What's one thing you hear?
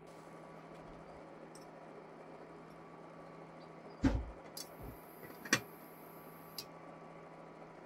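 Plates clink on a table.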